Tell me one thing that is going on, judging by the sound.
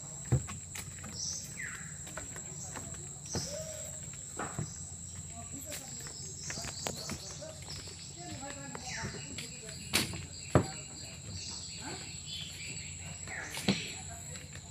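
Footsteps thud on wooden boardwalk planks.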